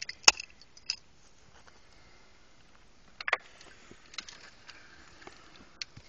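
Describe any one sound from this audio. Clods of earth knock and rattle against each other.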